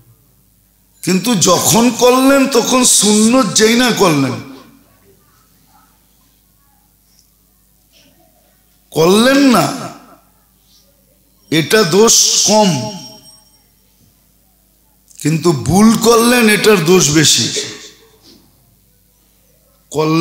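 An elderly man preaches forcefully into a microphone, in loud bursts with pauses between them.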